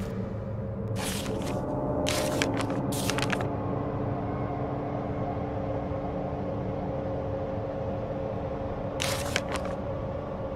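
Paper rustles as a page is handled.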